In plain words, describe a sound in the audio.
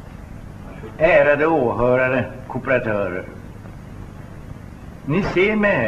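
An elderly man speaks calmly and clearly into a microphone.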